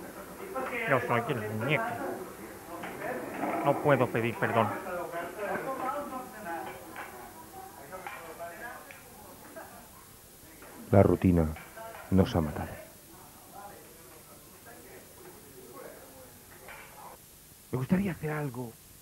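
A man speaks in a high, comic puppet voice.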